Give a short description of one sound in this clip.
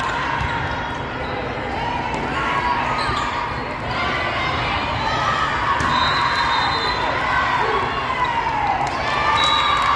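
Players and spectators shout and cheer in a large echoing hall.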